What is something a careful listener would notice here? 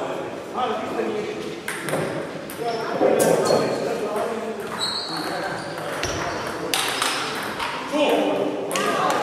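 Young men call out and talk loudly across the hall.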